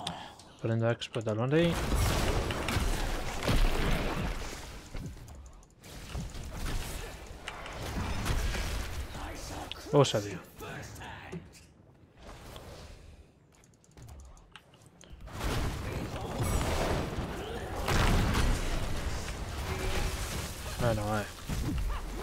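Game combat sounds of spells and blows clash.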